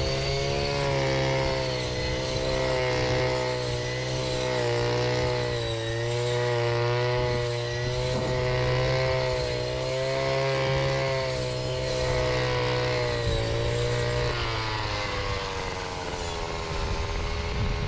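A string trimmer line swishes through tall grass.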